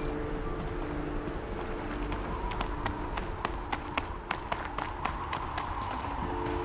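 Running footsteps crunch on snow.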